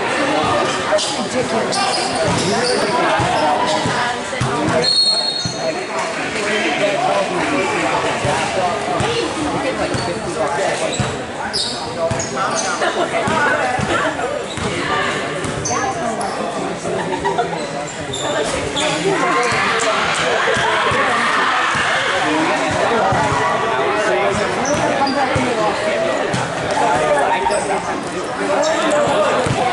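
Voices of players and onlookers murmur and call out in a large echoing hall.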